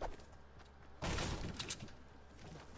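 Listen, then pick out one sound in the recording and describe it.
A pickaxe strikes metal with a sharp clang.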